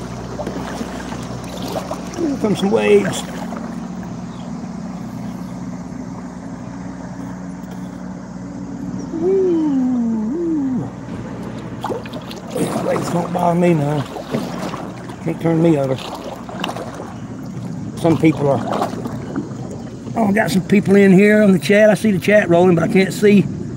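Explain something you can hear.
Water laps against the hull of a small boat.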